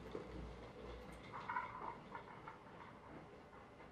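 A small toy car rolls across a wooden floor.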